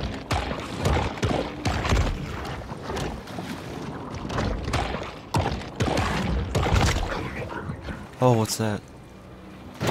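Water splashes as a small creature swims at the surface.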